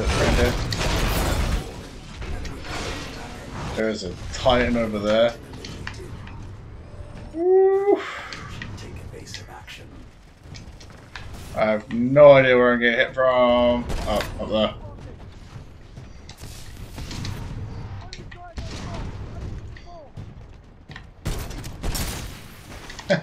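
Heavy guns fire in bursts.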